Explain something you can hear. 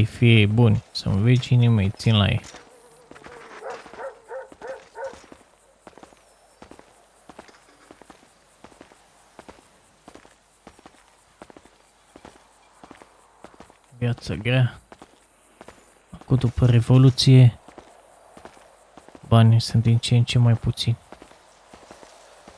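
Footsteps crunch on a dusty road.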